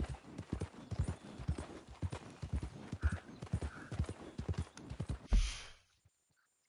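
A horse's hooves clop steadily on a dirt track.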